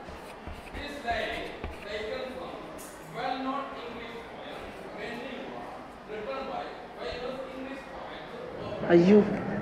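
Young men talk quietly in a room.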